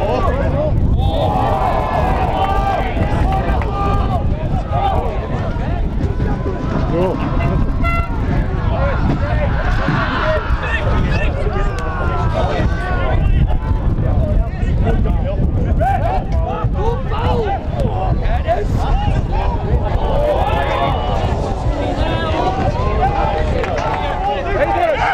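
Football players shout to each other on an open outdoor pitch.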